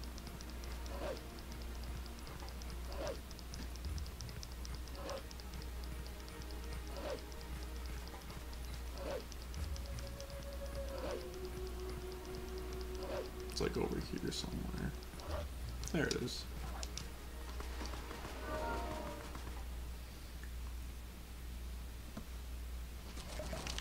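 Paws patter quickly on the ground.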